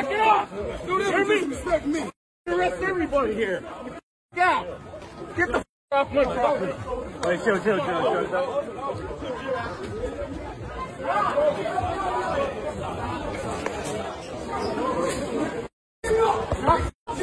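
A crowd of men shout and talk over one another nearby.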